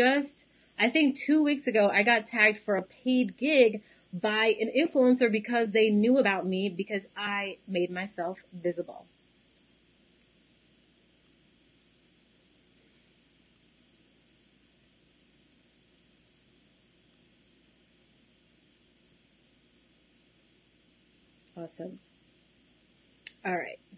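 A young woman speaks calmly and clearly into a microphone, heard as if over an online call.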